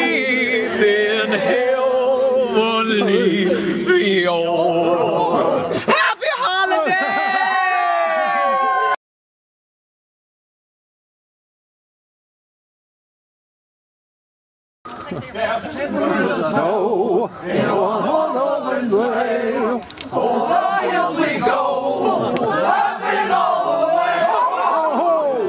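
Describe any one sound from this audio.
A crowd of young women sings loudly.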